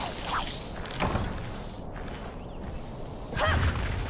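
A large insect buzzes its wings close by.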